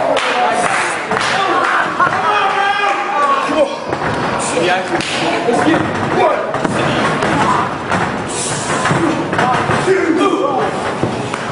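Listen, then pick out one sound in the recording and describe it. Loud slaps ring out as fighters strike each other with open hands.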